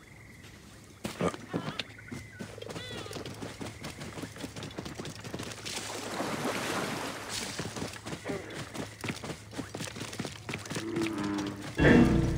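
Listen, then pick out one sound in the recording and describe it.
Hooves thud at a steady trot.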